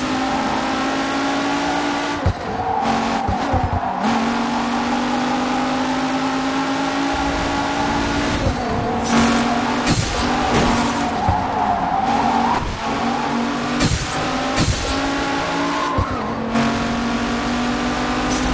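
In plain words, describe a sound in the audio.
A racing car engine roars steadily, shifting gears up and down.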